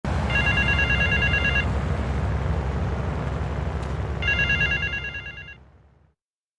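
A payphone rings in short electronic bursts.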